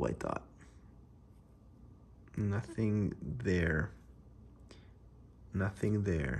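A plastic card sleeve rustles softly between fingers.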